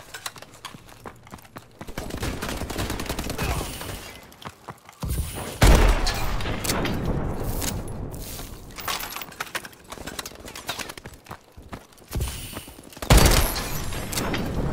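A heavy gun fires with loud booming blasts.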